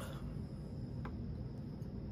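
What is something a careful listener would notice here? A glass clinks down onto a wooden table.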